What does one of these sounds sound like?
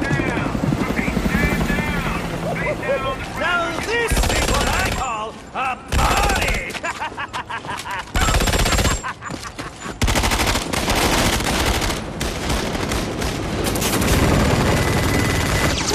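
Helicopter rotors thump overhead.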